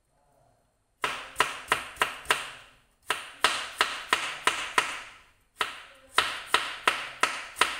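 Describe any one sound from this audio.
A knife chops quickly and rhythmically on a cutting board.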